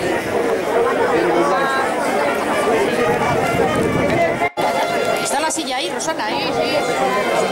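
A crowd of men and women chatters and calls out outdoors.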